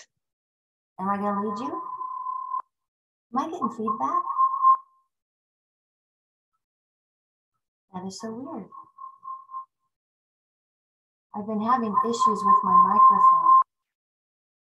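A middle-aged woman talks calmly over an online call, with pauses.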